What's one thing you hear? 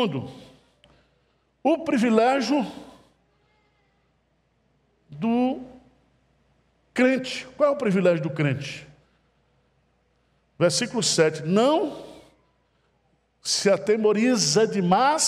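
An older man speaks emphatically through a headset microphone, with short pauses between phrases.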